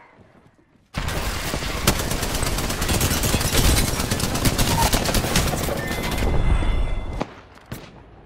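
Rapid gunfire bursts loudly and continuously.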